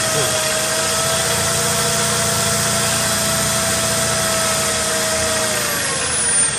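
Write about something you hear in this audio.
A power drill whines steadily.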